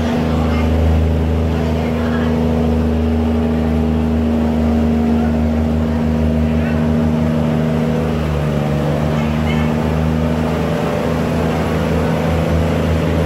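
A barge's diesel engine drones under load.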